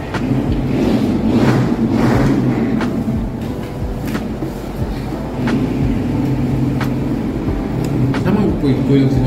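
Cutlery clinks against plates.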